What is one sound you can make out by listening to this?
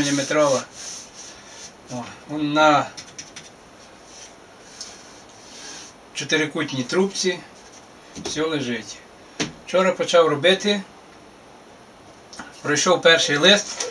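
A middle-aged man speaks calmly nearby, in pauses.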